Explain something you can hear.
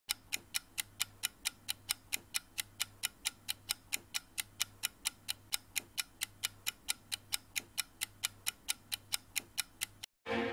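A clock ticks quickly and steadily.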